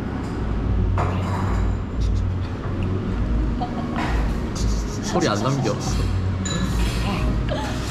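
Beer glugs as it is poured from a bottle into a glass.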